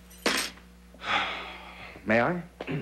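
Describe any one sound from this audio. A man sits down heavily on a couch with a rustle.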